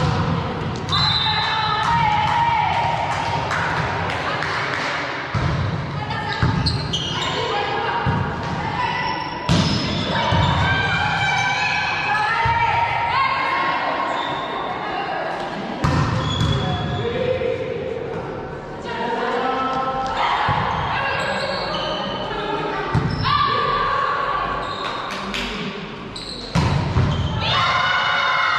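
Shoes squeak on the gym floor.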